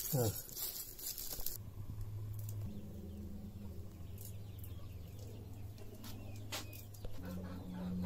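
A burning fuse fizzes and crackles.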